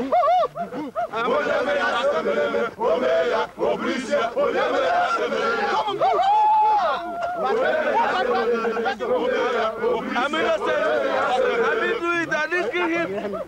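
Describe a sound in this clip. A group of men sing and chant loudly together outdoors.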